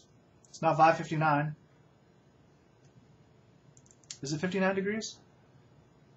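A middle-aged man speaks calmly and close to a microphone in two short phrases.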